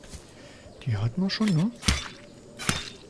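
A knife strikes a tree trunk with a short knock.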